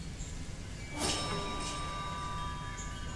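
A bright game chime rings out once and fades.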